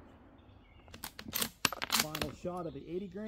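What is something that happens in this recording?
A rifle bolt clacks as it is worked.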